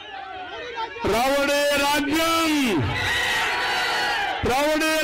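A man speaks loudly through a loudspeaker, with echo outdoors.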